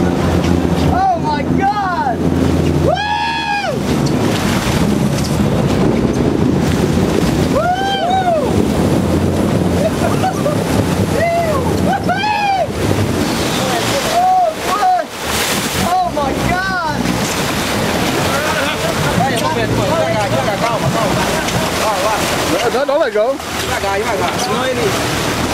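A man whoops and shouts excitedly nearby.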